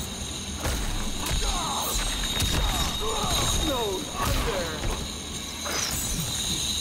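Heavy punches and kicks land with sharp thuds.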